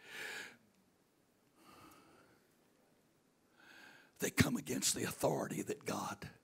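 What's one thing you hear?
An elderly man speaks with animation into a microphone, heard through loudspeakers in a large room.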